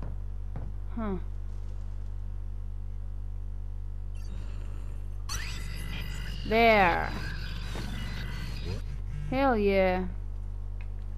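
A young woman exclaims briefly into a close microphone.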